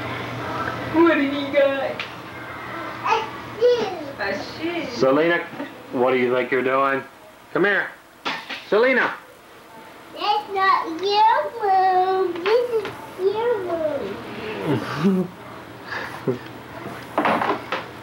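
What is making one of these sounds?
An adult talks nearby to a baby in an animated voice.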